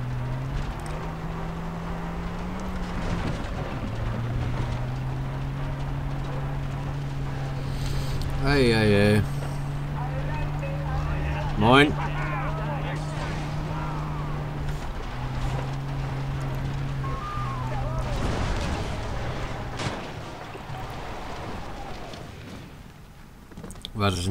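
Tyres rumble over a bumpy dirt road.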